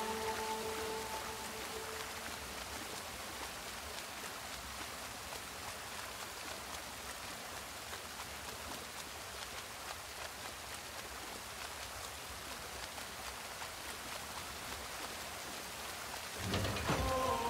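Waterfalls rush and splash steadily into water.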